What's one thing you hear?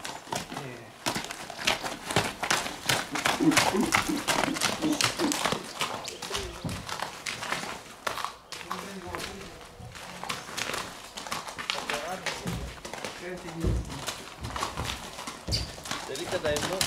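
Horse hooves clop on packed dirt.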